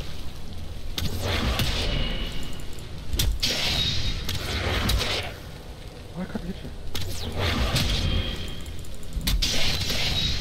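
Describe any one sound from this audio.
Heavy weapon blows strike with sharp hits.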